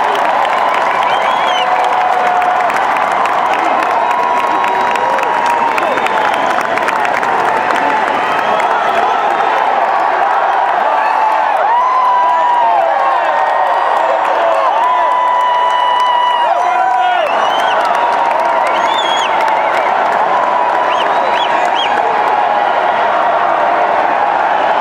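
A large crowd cheers and shouts in a large echoing hall.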